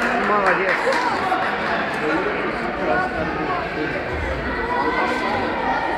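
A crowd of people chatters throughout in a large echoing hall.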